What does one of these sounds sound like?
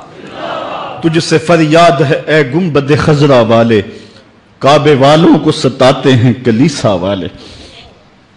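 A middle-aged man speaks with emotion into a microphone.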